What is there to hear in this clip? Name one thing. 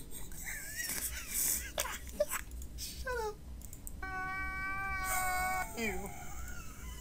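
A man wails and sobs loudly.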